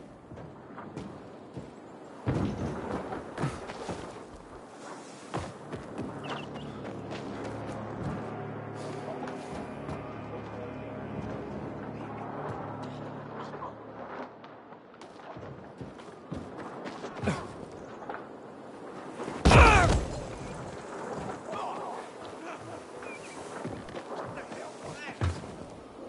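Footsteps thud quickly across a rooftop.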